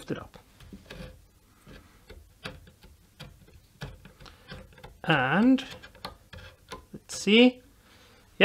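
A metal tool scrapes and clicks against wood.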